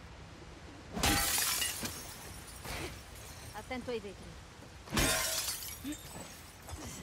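Glass shatters loudly as a hammer breaks a window.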